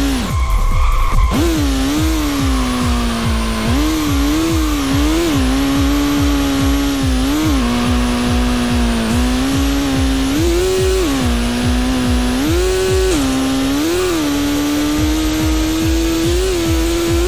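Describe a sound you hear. A racing car engine hums steadily and revs up and down.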